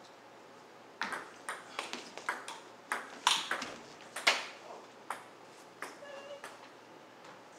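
Table tennis paddles strike a ball back and forth in a rally.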